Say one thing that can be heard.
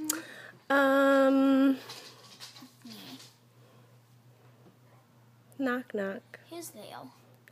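A young boy talks and sings playfully close by.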